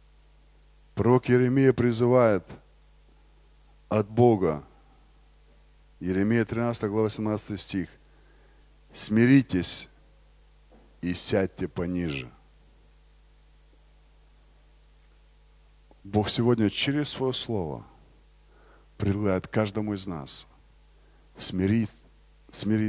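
A man speaks with animation through a microphone in a large echoing hall, pausing between phrases.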